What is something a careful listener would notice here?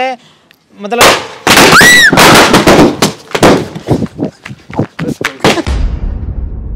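Firecrackers bang loudly in rapid bursts.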